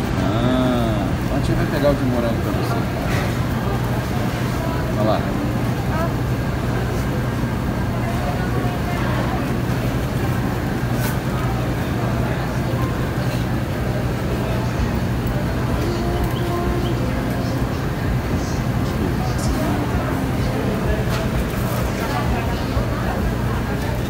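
A metal scoop scrapes through ice cream.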